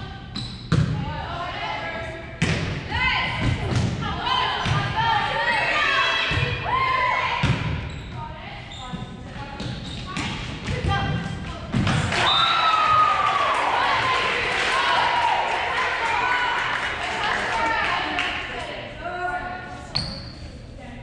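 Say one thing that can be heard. A volleyball is hit with sharp smacks that echo through a large hall.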